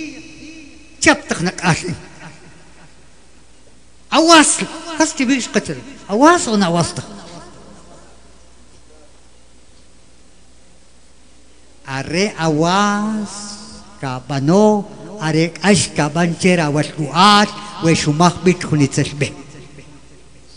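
An elderly man speaks with animation into a microphone, heard through a loudspeaker, with pauses.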